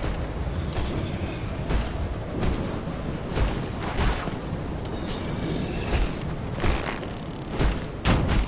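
Armoured footsteps crunch through snow at a steady pace.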